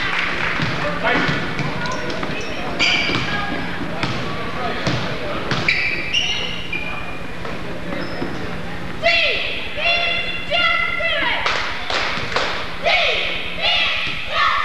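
Sneakers squeak sharply on a hard floor in an echoing gym.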